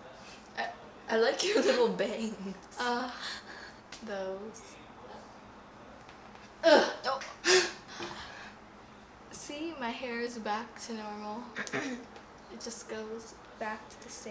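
A second young girl laughs and chatters close by.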